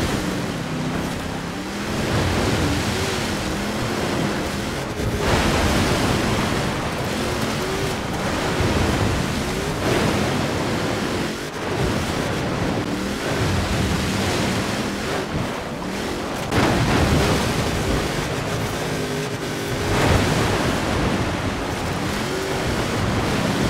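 Tyres splash through water and slush.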